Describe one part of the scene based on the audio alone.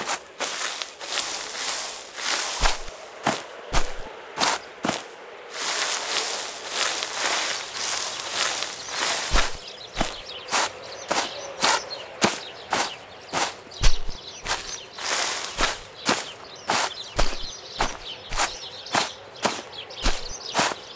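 Footsteps rustle steadily through dry grass and ferns.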